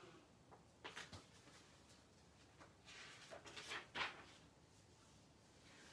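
Book pages rustle as a woman turns them.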